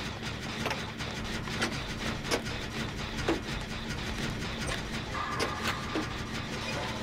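Metal parts of an engine clank and rattle.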